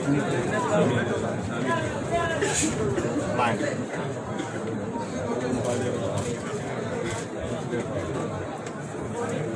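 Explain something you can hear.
A crowd of men murmurs and talks close by.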